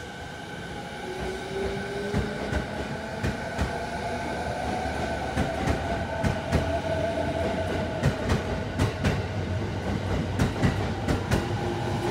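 An electric train pulls away with a rising motor whine.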